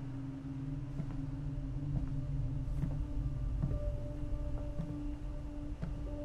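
Footsteps tread slowly on a wooden floor.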